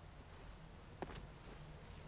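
A bowstring creaks as a bow is drawn taut.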